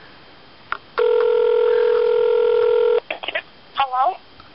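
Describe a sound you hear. A cordless phone rings with a loud, steady electronic tone, then warbling chirps.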